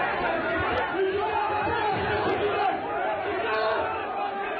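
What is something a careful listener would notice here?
A man pleads loudly for calm.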